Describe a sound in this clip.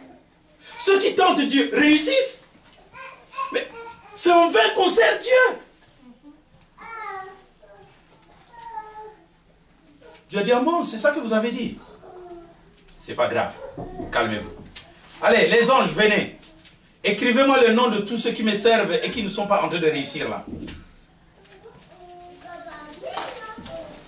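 A man preaches loudly and with animation through a clip-on microphone, pausing between phrases.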